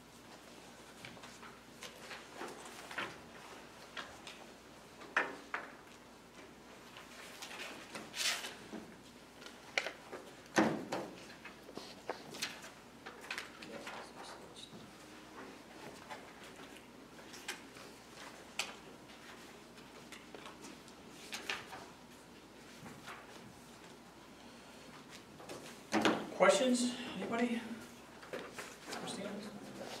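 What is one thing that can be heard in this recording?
Paper rustles as pages are turned close to microphones.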